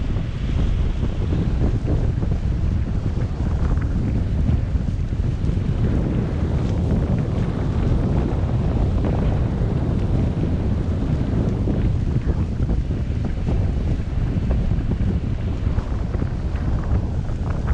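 Strong wind buffets and roars loudly across a microphone outdoors.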